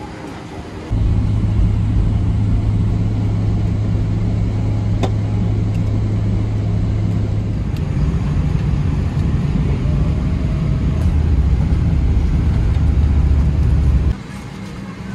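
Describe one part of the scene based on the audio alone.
A plane's engines drone in a low, steady roar.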